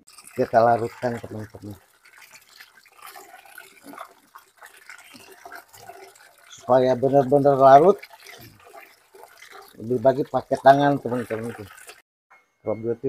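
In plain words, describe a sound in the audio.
Water splashes and sloshes in a bucket as hands scrub.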